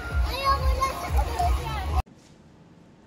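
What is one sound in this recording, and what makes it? Children shout and chatter outdoors.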